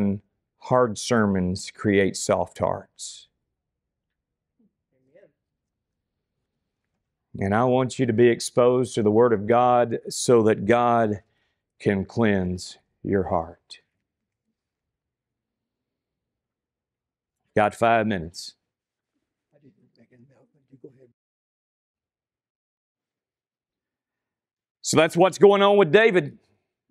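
A man speaks calmly into a microphone, with long pauses.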